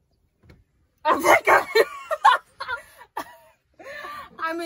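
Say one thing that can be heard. A young woman talks and laughs loudly with animation, close by.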